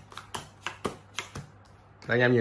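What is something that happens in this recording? Playing cards snap and flick as they are dealt.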